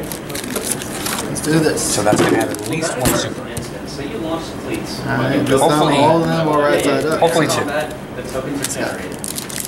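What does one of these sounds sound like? Foil card packs crinkle as they are handled.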